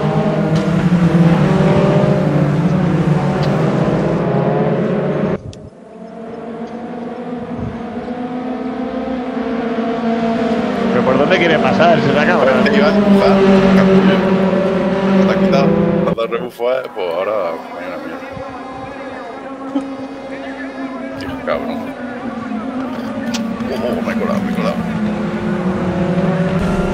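Tyres screech through the corners.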